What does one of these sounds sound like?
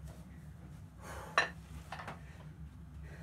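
Metal weight plates clink and clank.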